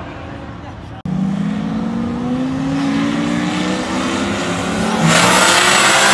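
Race car engines rumble loudly and rev up at a start line.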